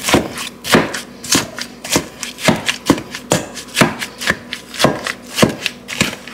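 A potato masher squishes and thumps through soft strawberries in a metal bowl at a steady, quick rhythm.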